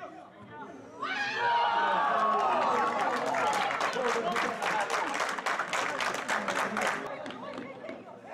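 Men cheer loudly and excitedly.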